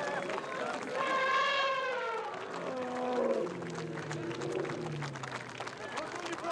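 An elephant trumpets.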